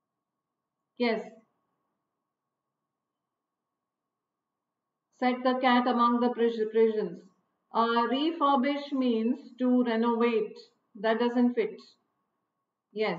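A middle-aged woman speaks with animation into a close microphone.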